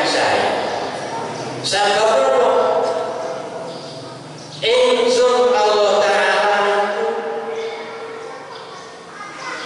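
An elderly man chants in long, drawn-out notes into a microphone, heard through a loudspeaker with a slight echo.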